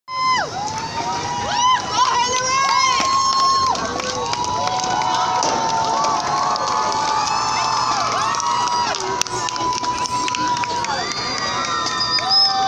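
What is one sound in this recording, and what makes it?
A crowd cheers and shouts in the distance.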